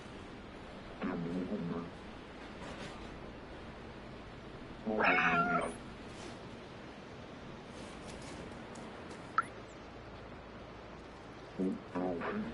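A cat meows several times.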